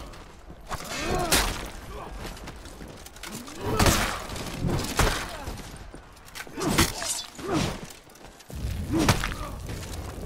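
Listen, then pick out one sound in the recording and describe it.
Men grunt and shout as they fight.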